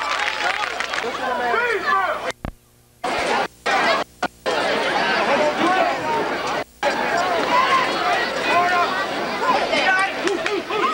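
A crowd cheers and shouts from the stands outdoors.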